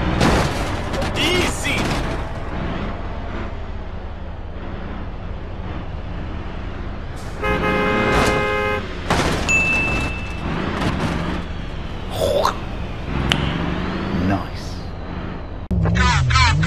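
A truck engine rumbles.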